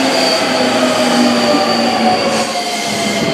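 An electric commuter train rolls past and fades away.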